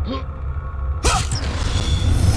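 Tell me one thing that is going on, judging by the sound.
A magical burst whooshes loudly.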